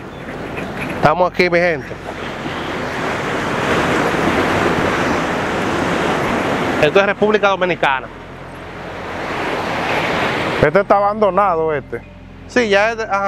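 Waves wash onto a sandy shore in a steady rush.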